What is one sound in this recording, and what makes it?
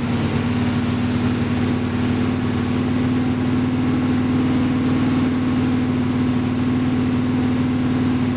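A drive wheel spins on rollers with a low whir.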